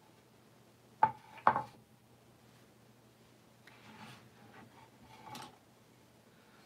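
A wooden stick taps and scrapes on a hard glossy surface.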